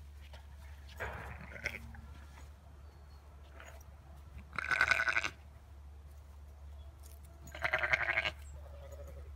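Lambs bleat loudly nearby.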